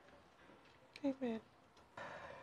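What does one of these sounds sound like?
A young woman speaks briefly and quietly.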